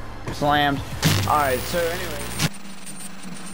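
Television static hisses loudly.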